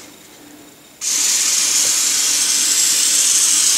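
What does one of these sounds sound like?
An aerosol can sprays with a steady hiss.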